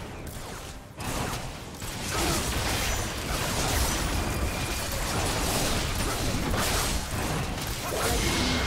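Spell blasts and magical whooshes burst and crackle in a fast game battle.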